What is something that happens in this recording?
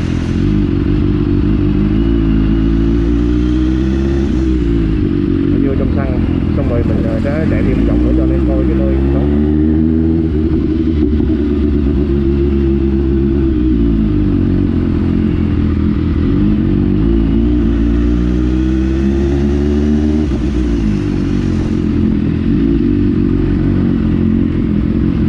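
A motorcycle engine revs up and down close by as it rides.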